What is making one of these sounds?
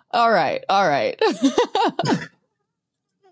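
A young woman laughs through a microphone over an online call.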